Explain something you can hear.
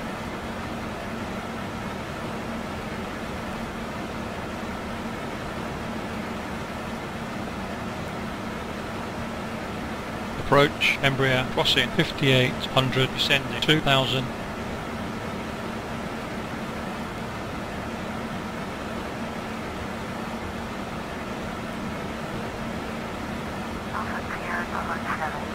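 A jet engine hums steadily in the background.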